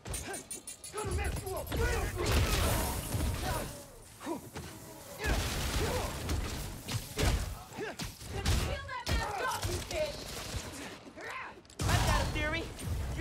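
Punches and blasts thud and crack in a fight.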